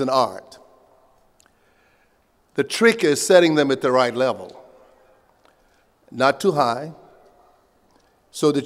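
An elderly man speaks slowly and calmly into a microphone, heard over loudspeakers outdoors with a faint echo.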